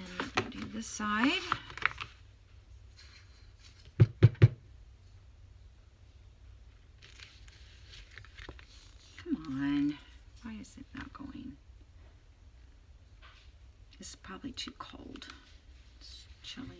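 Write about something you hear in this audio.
Hands rub and smooth paper.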